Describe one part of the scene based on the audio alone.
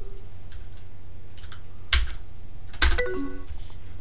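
A computer alert chimes once as a message is sent.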